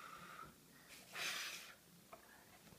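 A young girl blows air in a short puff.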